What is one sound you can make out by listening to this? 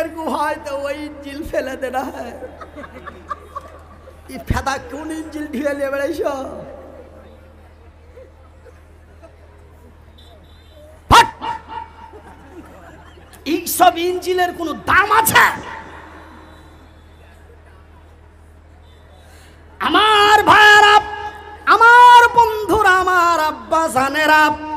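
A man preaches with passion into a microphone, his voice rising and echoing through loudspeakers.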